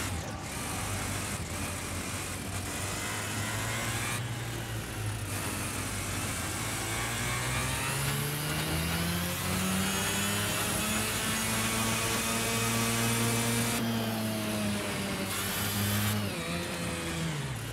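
A kart engine buzzes loudly, revving up as it speeds along a straight and dropping as it slows into a bend.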